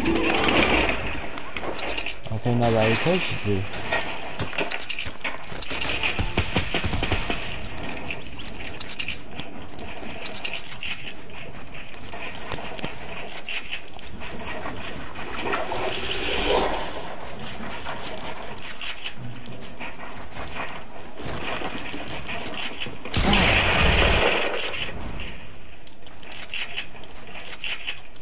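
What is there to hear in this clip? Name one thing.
Gunshots crack repeatedly in a video game.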